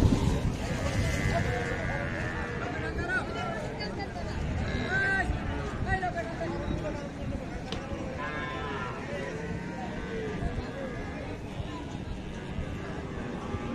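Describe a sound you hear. A crowd of men and women chatter at a distance outdoors.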